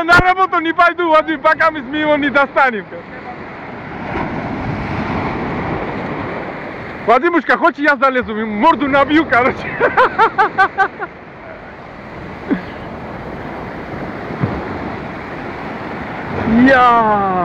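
Waves wash and break on a shore throughout.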